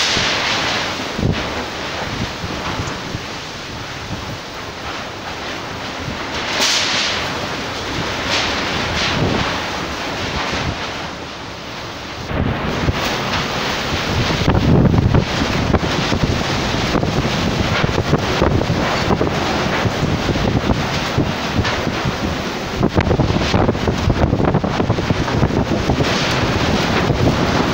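Rain pours steadily onto a wet street.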